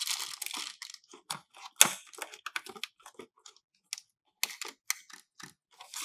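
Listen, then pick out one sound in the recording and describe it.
Plastic toy parts clack and knock together.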